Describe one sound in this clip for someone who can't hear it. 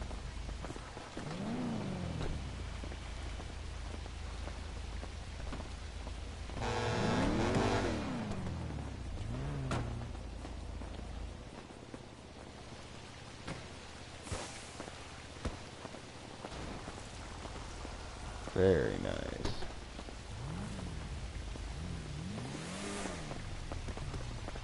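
A car engine revs up and down several times.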